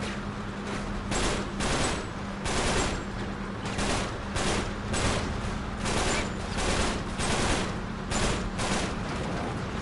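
Gunfire rattles in repeated bursts.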